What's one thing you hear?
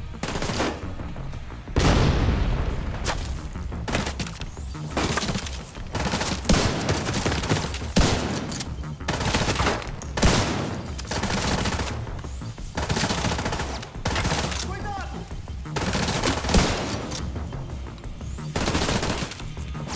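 Rifle shots fire in loud, echoing bursts.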